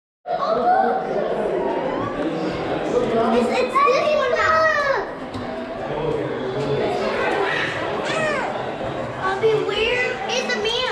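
Young children chatter and squeal excitedly close by, echoing indoors.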